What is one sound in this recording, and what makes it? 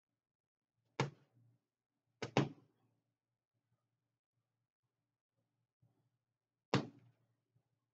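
Fists thump against a heavy punching bag.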